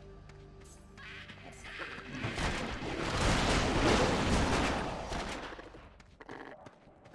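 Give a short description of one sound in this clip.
Spells and blows crash and burst in a fight.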